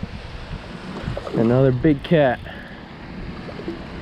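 A fish splashes at the water's surface nearby.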